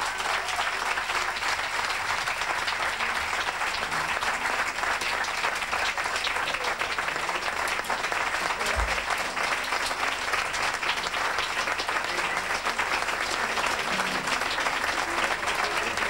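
An audience applauds steadily in a room.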